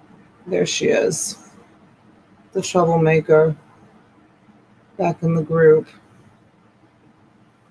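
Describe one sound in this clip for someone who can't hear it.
Small metal charms click softly as a hand sets them down on cloth.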